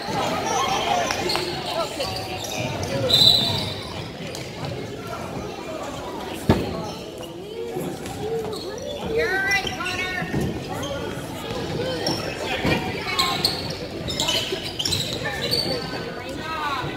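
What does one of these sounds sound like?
A basketball bounces on the floor in a large echoing gym.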